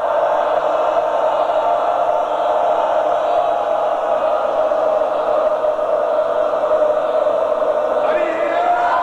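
A man speaks loudly into a microphone in a large echoing hall.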